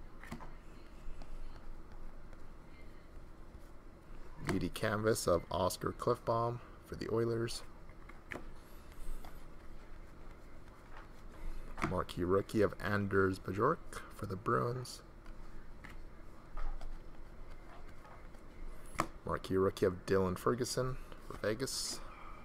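Trading cards slide and flick against each other in a pair of hands.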